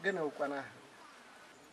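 An elderly man asks a question close by.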